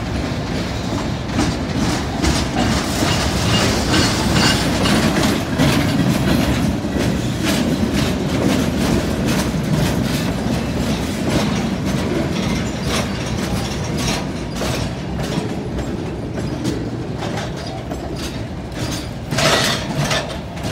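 A freight train rumbles past at close range.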